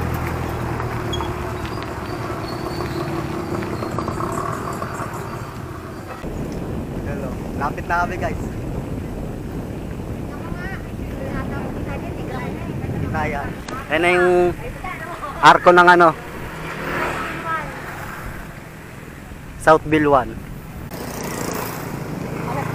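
Wind rumbles against a microphone while cycling outdoors.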